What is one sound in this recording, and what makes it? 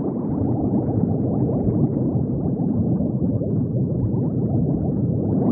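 Water bubbles gurgle and burble steadily.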